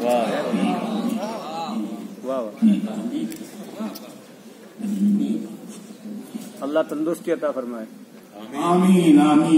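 An elderly man recites with feeling into a microphone, heard through loudspeakers in a large echoing hall.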